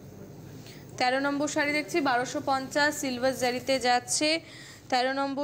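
A woman talks with animation, close to a microphone.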